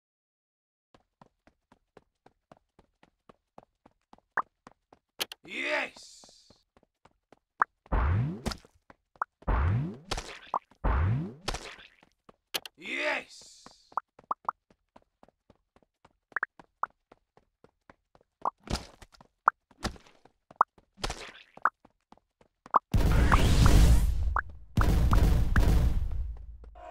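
Short game blips tick rapidly.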